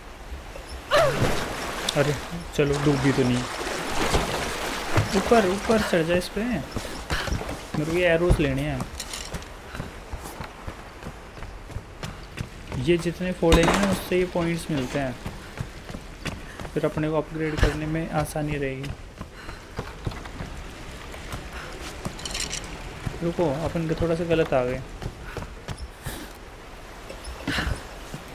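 Water splashes and churns as a person wades through it.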